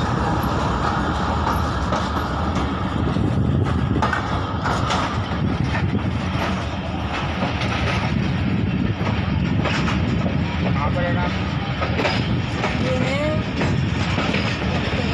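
A train rumbles steadily along the tracks, heard from on board.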